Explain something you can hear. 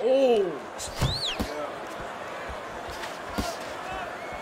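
Punches thud in a video game boxing match.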